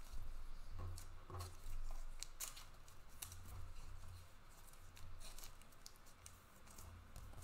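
Plastic card wrappers crinkle and rustle in someone's hands.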